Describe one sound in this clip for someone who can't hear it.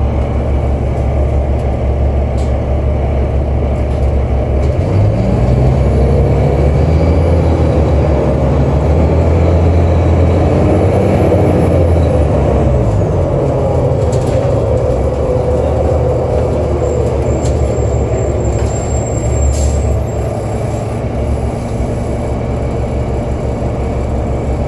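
A bus engine rumbles steadily from inside the bus.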